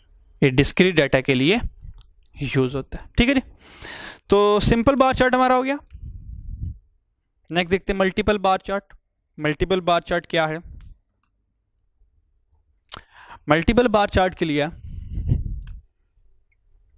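A man lectures calmly into a close microphone, pausing between phrases.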